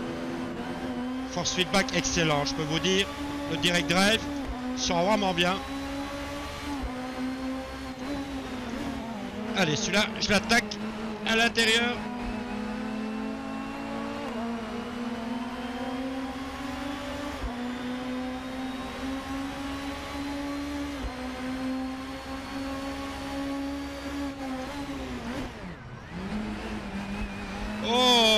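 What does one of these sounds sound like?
A four-cylinder racing car engine revs up through the gears.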